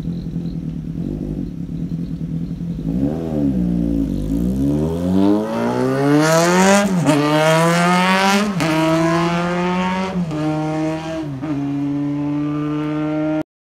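A motorcycle engine idles, then revs hard and pulls away, shifting up through the gears as it fades into the distance.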